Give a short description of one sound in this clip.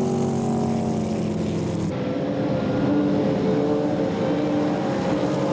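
Water spray hisses behind a speeding boat.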